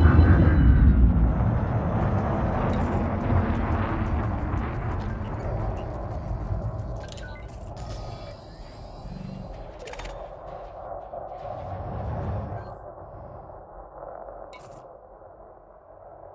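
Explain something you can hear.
A spaceship engine rumbles low and slowly fades.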